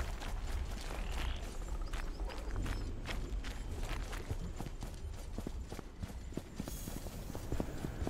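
Armoured footsteps thud steadily on stone.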